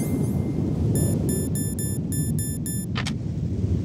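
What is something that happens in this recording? Electronic menu beeps chirp quickly.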